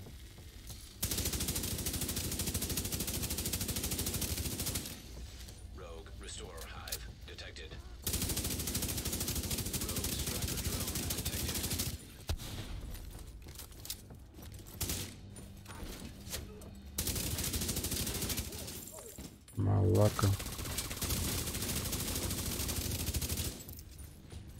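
A rifle fires in long, rapid bursts.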